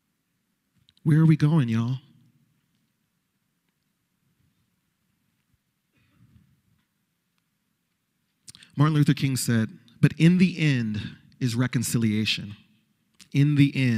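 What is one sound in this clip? A man speaks with emotion into a microphone, with pauses between phrases.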